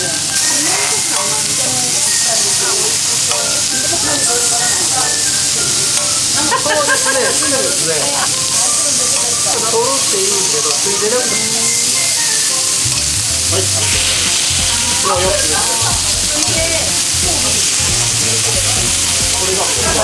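Meat sizzles steadily on a hot grill plate.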